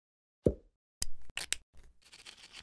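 A pen cap clicks off.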